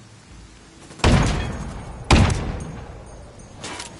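Rifle shots fire loudly, one after another, and echo away.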